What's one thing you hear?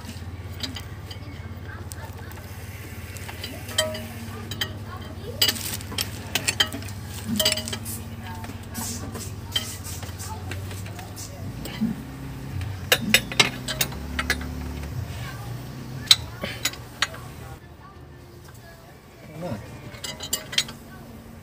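Metal tools clink and tap against engine parts.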